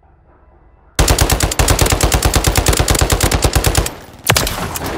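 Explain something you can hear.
A rifle fires a rapid burst of shots in an echoing hall.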